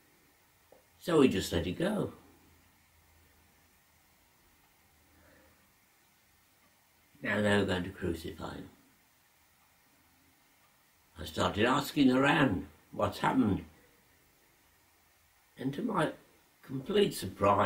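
An elderly man speaks slowly and quietly in short phrases, close by.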